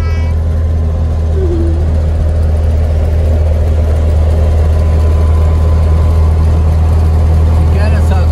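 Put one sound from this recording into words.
A car engine hums steadily and loudly from inside the car.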